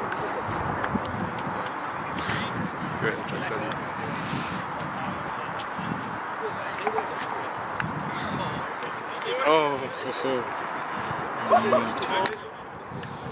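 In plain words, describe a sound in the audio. Young men chatter and call out nearby outdoors.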